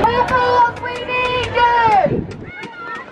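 A young woman shouts through a megaphone.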